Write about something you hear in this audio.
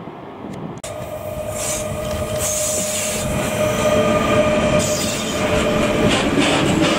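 An electric locomotive hums with a steady whine as it passes.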